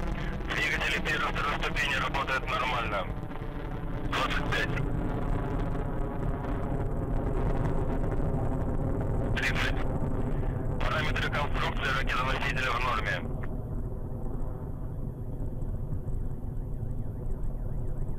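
A rocket engine roars with a deep, steady rumble in the distance.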